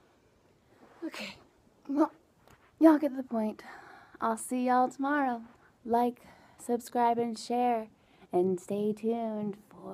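A young woman speaks close up, with animation.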